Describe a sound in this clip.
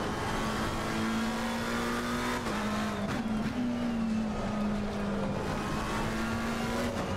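A racing car engine hums steadily, dropping in pitch with each gear change.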